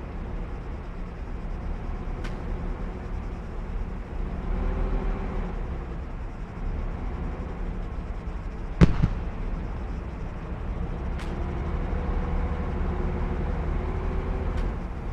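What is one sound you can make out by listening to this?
Tank engines rumble and clank steadily.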